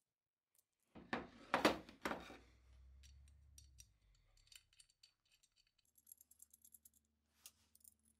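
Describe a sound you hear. Small metal screws click and rattle against a metal part.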